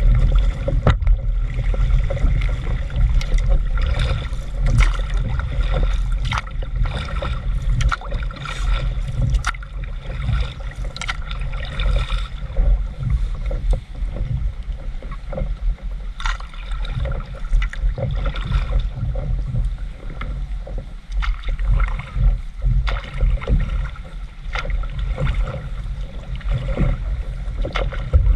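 Wind rumbles low and steady over the water outdoors.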